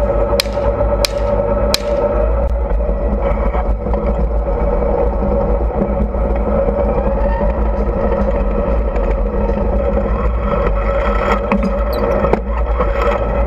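A tank engine rumbles loudly and steadily.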